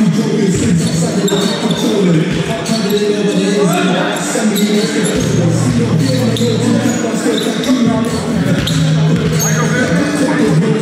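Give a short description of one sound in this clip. Trainers squeak on a hard floor.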